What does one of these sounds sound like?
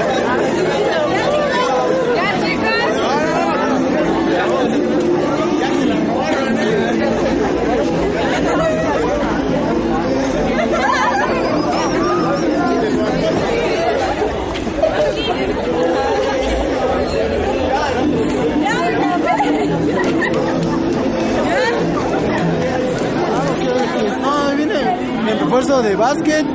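A dense crowd of men and women chatters and calls out loudly all around.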